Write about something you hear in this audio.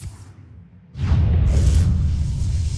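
A game's electric spell crackles and booms.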